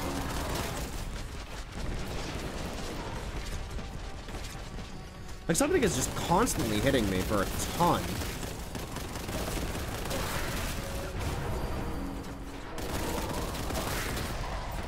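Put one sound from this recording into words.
A shotgun fires rapidly in a video game.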